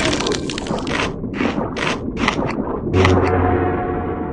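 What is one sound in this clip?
A cartoon shark chomps in quick, crunching bites.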